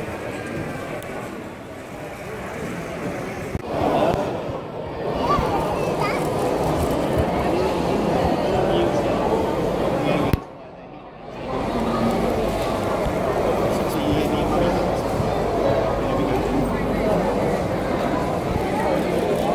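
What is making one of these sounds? Toy trains rattle and whir along plastic tracks close by.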